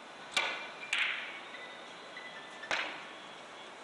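Billiard balls knock against each other and the cushions.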